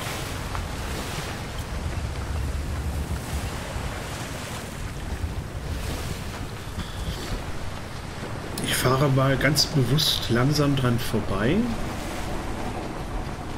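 Ocean waves wash and churn against a wooden ship.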